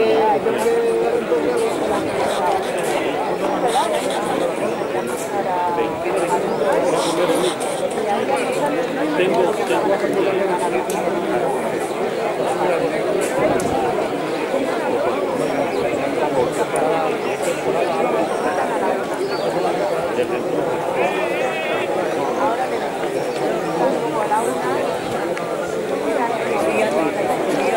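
A crowd of people chatters and calls out in the distance outdoors.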